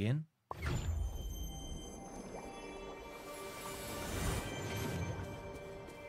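A magical shimmer chimes and swirls.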